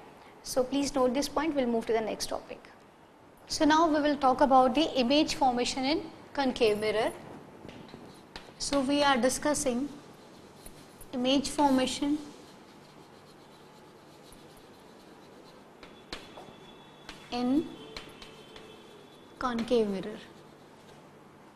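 A woman speaks clearly and calmly, close to a microphone.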